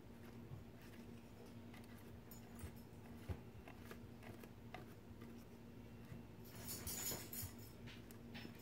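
A brush dabs and scrapes softly on paper.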